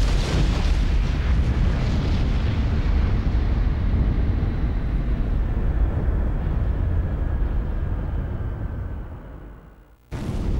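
A burning aircraft roars as it falls.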